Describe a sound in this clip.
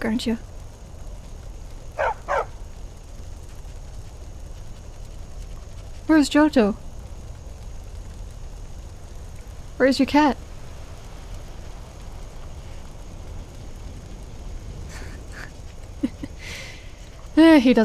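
A dog barks in short bursts.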